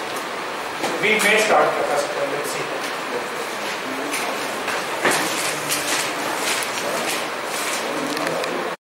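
A man speaks calmly and steadily through a close headset microphone.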